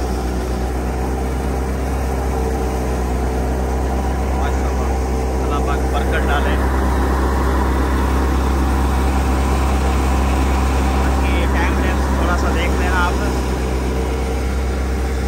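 A threshing machine engine drones and rumbles steadily.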